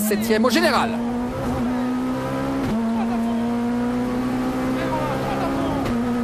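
A rally car engine roars loudly at high revs, heard from inside the cabin.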